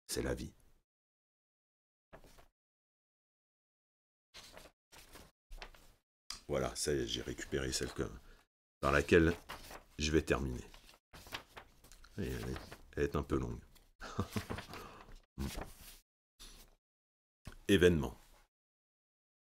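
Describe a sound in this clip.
A man speaks calmly and closely into a microphone, reading out in short phrases.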